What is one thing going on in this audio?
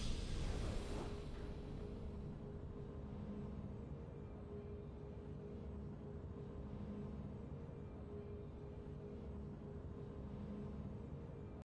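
Soft, low game music hums steadily in a slow repeating pattern.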